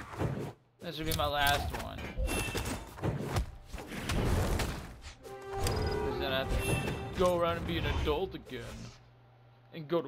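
Cartoon fighters clash with quick hits and swooshes.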